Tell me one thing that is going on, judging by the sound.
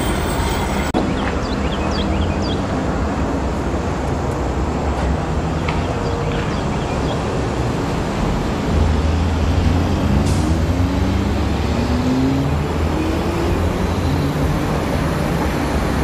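An approaching train rumbles low and grows louder.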